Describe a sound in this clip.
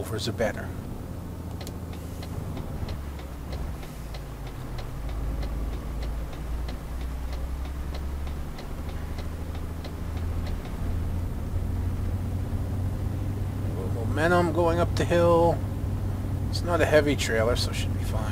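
A truck engine rumbles low and steady.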